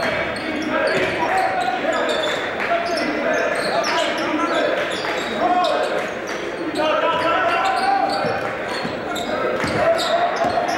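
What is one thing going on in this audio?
Voices of players and spectators echo in a large gym.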